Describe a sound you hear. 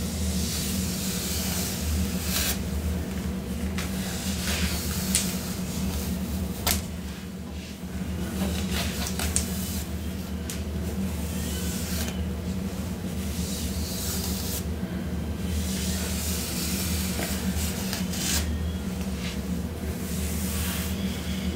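A young woman talks softly and calmly close by.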